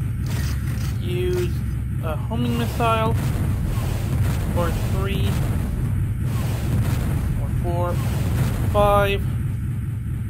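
Short electronic chirps sound as weapons are switched.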